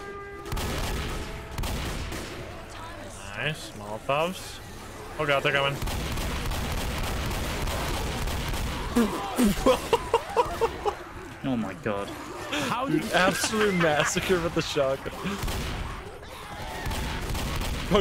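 Shotgun blasts boom in quick bursts.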